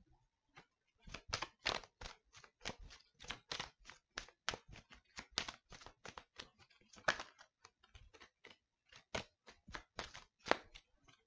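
Playing cards are shuffled by hand with quick, rapid flicks.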